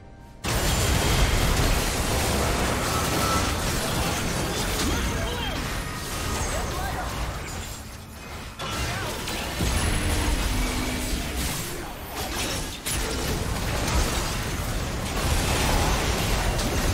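Magic blasts, whooshes and explosions crash in a busy video game battle.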